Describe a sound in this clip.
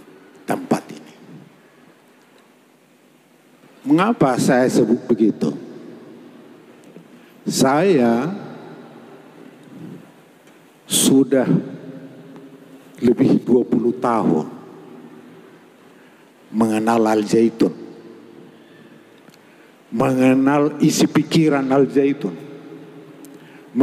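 An elderly man sings into a microphone in short phrases, with echo in a large hall.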